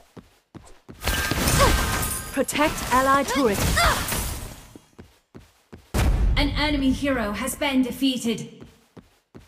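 Magic blasts whoosh and crackle in bursts.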